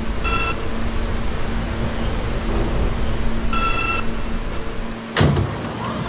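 A subway train hums and rumbles at a platform.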